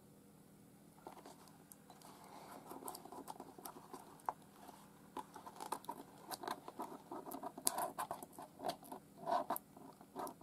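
Hands rustle and tap against a box, with paper crinkling.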